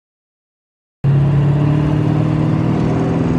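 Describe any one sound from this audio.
A car engine hums steadily nearby.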